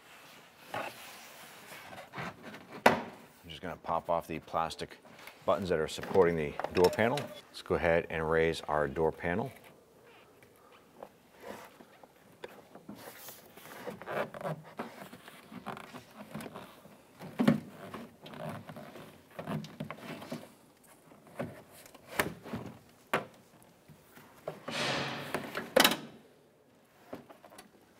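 Hands press and tug a plastic door panel, which creaks and clicks.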